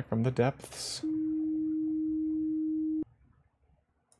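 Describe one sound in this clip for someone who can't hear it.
A steady electronic tone hums, then cuts off abruptly.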